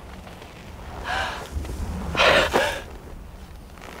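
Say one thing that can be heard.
A young woman gasps and moans close by.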